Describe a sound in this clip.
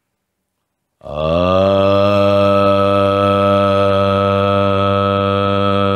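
An elderly man chants a long, steady low tone.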